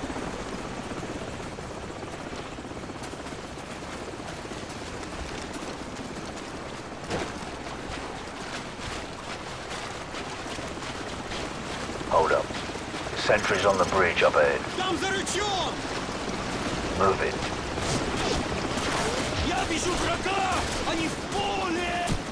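Footsteps rustle through wet grass and mud.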